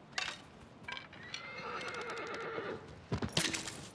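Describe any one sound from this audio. A horse whinnies.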